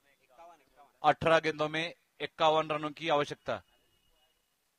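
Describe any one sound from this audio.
A man speaks loudly and with animation close by.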